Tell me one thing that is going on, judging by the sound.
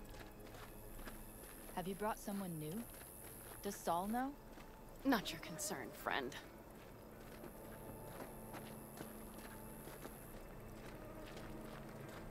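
Footsteps crunch on dry dirt.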